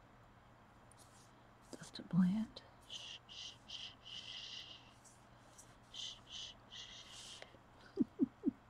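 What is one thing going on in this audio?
A paintbrush brushes softly against a hard surface in short strokes.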